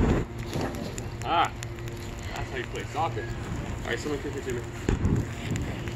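Flames whoosh up from a burning ball.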